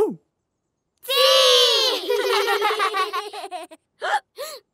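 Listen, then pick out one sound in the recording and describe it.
Cartoon children cheer and laugh together.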